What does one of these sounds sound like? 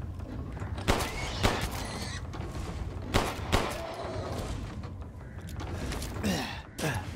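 A pistol clicks as it is reloaded.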